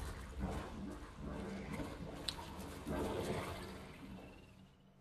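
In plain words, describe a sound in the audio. A large beast gallops heavily over wet ground.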